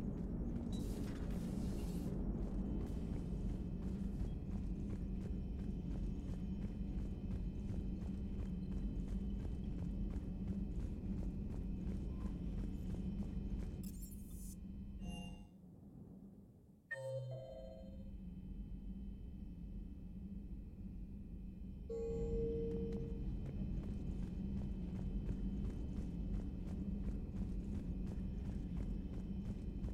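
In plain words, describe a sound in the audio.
Footsteps clang steadily on a metal floor.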